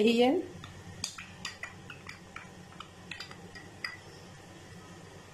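A wooden spoon stirs and taps against a glass bowl.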